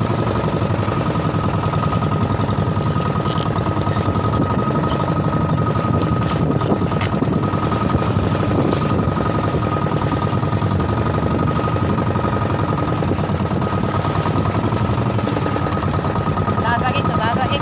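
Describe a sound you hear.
Waves splash against a boat's hull.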